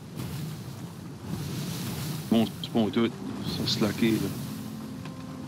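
Rough sea waves surge and crash against a ship's hull.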